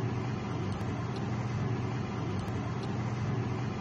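A fork whisks eggs, clinking against a ceramic bowl.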